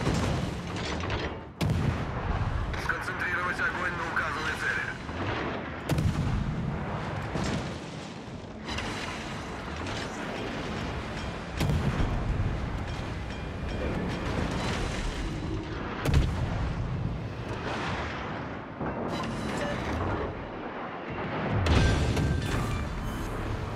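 Shells explode with deep bursts.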